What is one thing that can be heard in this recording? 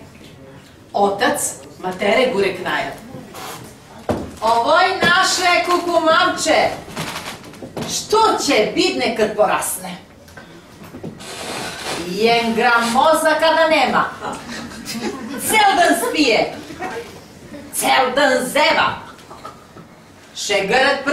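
A middle-aged woman recites with feeling, close by.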